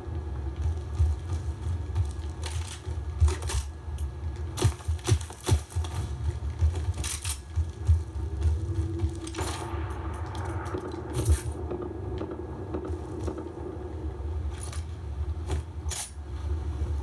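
Video game gunshots and effects sound from a television speaker.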